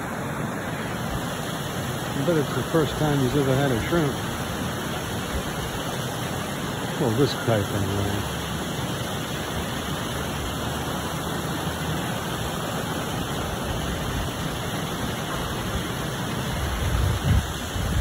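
A Canada goose paddles through water.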